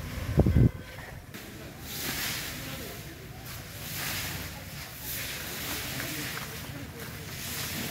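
A shovel scrapes and scoops sand.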